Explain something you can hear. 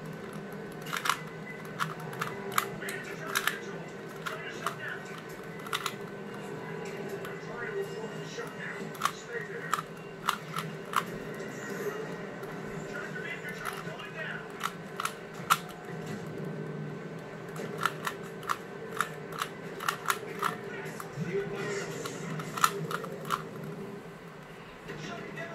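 Plastic puzzle cube pieces click and clack quickly as the cube is twisted by hand.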